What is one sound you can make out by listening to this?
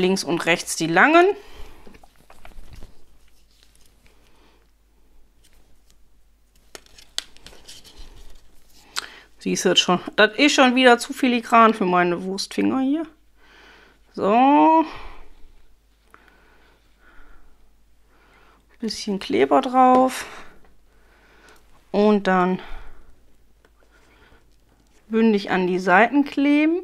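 Strips of paper rustle softly as they are handled.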